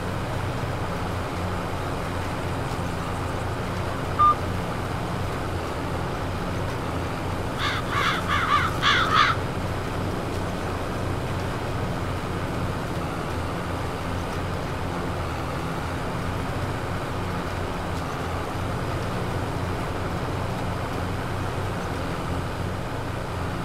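A seed drill rattles over soil.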